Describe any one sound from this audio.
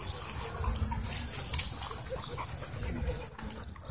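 A dog pants heavily close by.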